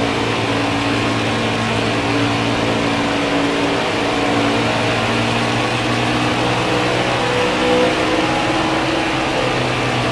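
Tyres hum on the track.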